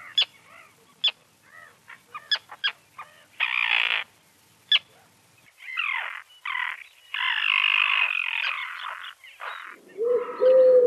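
A tern gives sharp, harsh calls.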